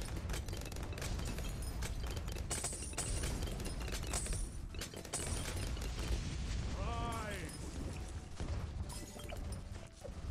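Rapid game pops and blasts crackle constantly.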